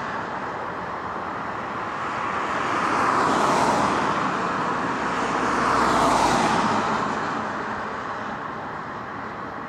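Heavy vehicle engines rumble slowly in the distance.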